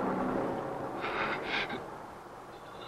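A young man grunts with strain.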